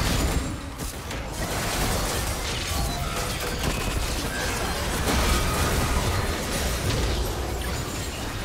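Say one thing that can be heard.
Magic blasts and weapon hits crackle and clash rapidly in a busy fight.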